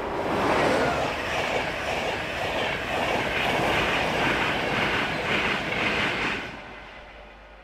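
A passenger train rushes past close by with a loud roaring whoosh that suddenly drops away.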